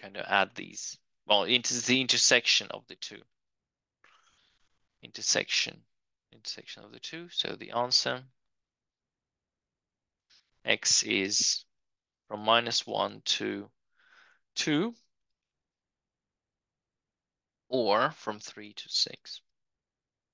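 A man explains calmly through a microphone, in short phrases with pauses.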